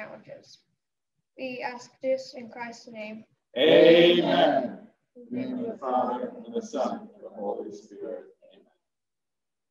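A young boy reads aloud calmly into a microphone.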